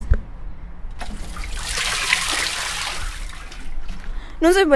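Water from a watering can splashes onto plants.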